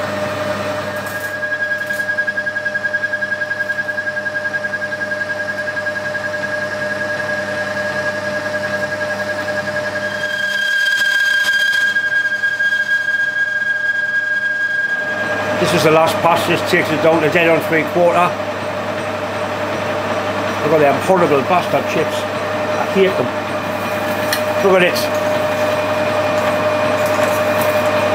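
A cutting tool scrapes and whines against spinning metal.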